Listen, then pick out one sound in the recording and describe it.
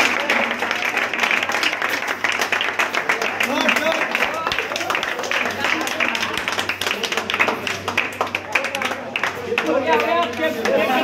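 A crowd of young men claps rapidly.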